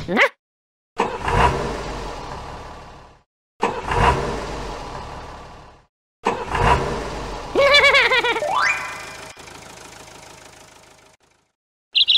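A tractor engine sputters and puffs.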